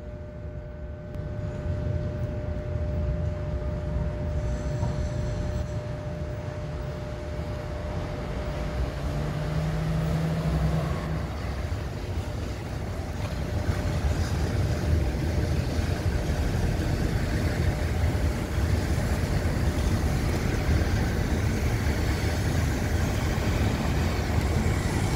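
A train rumbles past slowly on the tracks.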